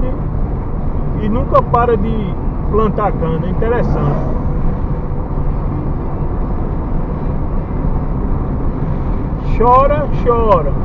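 A car engine hums and tyres rumble steadily on the road, heard from inside the car.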